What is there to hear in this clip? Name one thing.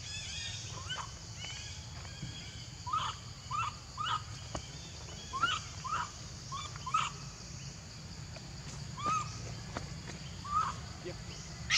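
A young monkey gives short, high squeaks.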